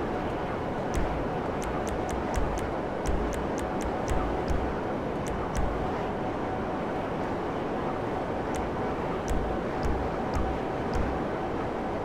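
Short menu clicks tick several times.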